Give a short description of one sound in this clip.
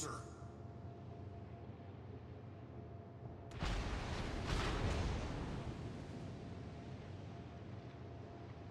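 A ship's engine rumbles low and steady over the sea.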